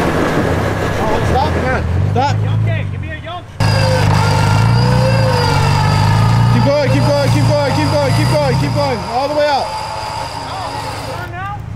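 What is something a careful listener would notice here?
A truck engine rumbles and revs.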